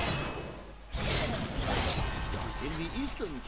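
A bright chime rings out and shimmers.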